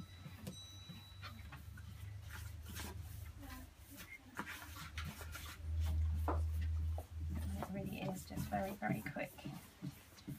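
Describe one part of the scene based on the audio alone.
A cloth rubs and wipes against a wooden surface.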